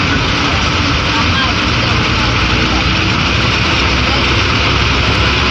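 Wind rushes loudly past an open bus window.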